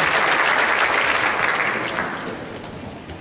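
An audience applauds in a large echoing hall, and the applause fades out.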